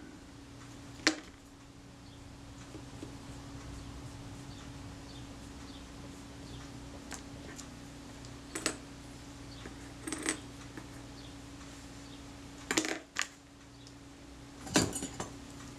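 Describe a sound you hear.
Small metal parts click and tap as they are handled.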